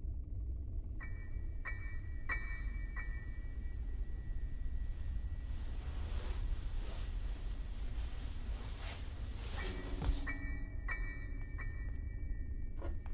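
Footsteps thud on a creaking wooden floor.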